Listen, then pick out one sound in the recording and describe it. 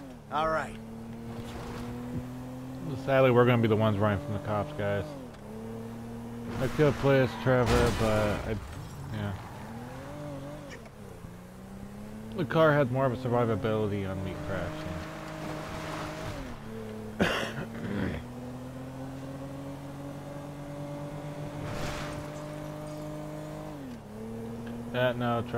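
A car engine hums steadily and shifts pitch as the car speeds up and slows down.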